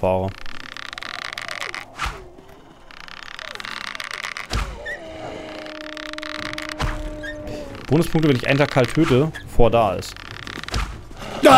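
A bowstring creaks as it is drawn back.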